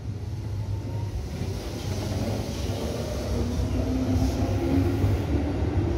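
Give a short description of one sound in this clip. A train rumbles slowly along the platform close by.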